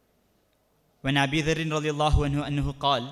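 A young man sings into a microphone over a loudspeaker.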